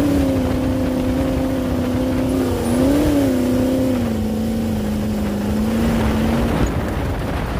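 A dune buggy engine drones loudly and revs up and down.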